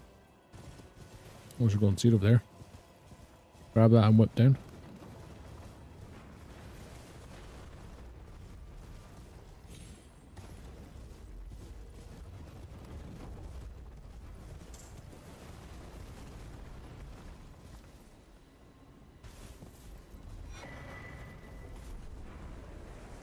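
A horse gallops with steady hoofbeats.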